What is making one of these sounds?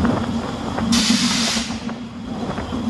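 A burst of steam hisses briefly.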